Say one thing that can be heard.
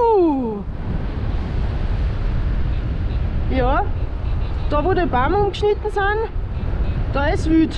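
Wind rushes loudly past a paraglider in flight.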